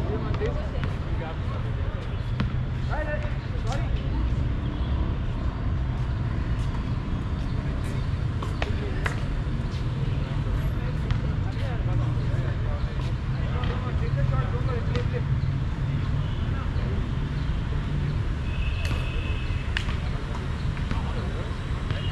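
Young men call out to each other at a distance on the court.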